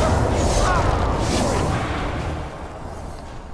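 A magic spell whooshes and crackles loudly.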